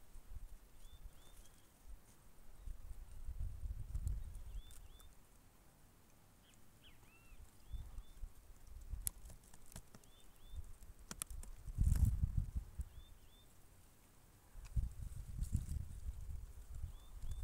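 A small bird chirps softly nearby.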